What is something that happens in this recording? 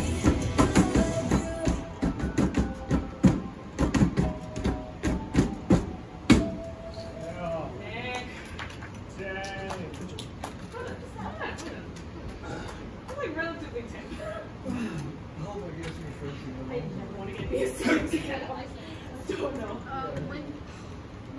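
Fast electronic dance music plays loudly from an arcade machine.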